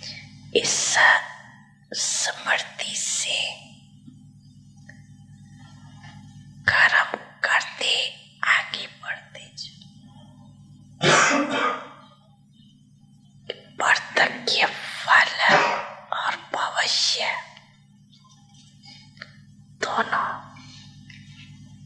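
A young man speaks into a microphone in short phrases, with pauses.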